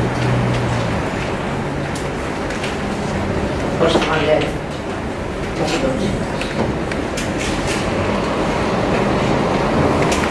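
People in a small crowd murmur and chatter.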